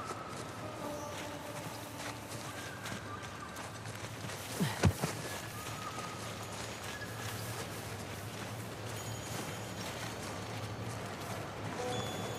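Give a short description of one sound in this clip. Leaves rustle as someone crawls through undergrowth.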